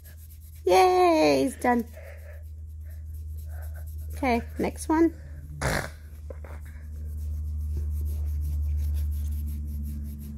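A nail file rubs softly against fabric.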